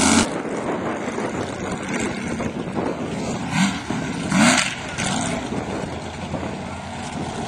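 A big truck engine rumbles loudly and revs.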